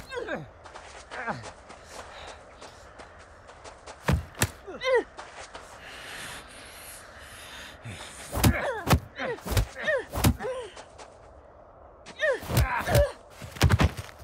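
A young man grunts with effort.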